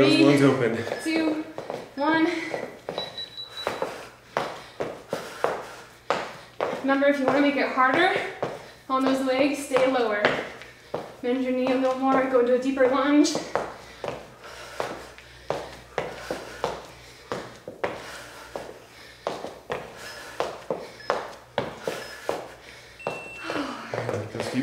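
Feet thump quickly and rhythmically on a hard floor.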